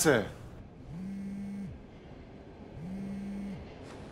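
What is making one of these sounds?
A phone rings with repeated electronic tones.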